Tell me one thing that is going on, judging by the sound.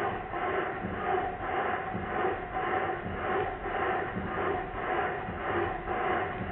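A small steam engine whirs and clatters as it runs.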